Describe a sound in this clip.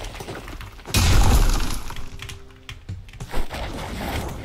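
Heavy rocks crash and crumble.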